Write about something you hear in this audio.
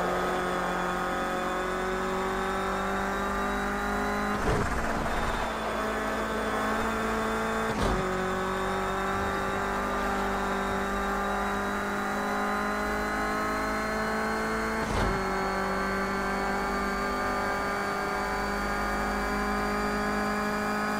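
A racing car engine roars at high revs, rising in pitch as it speeds up and dropping briefly at each gear change.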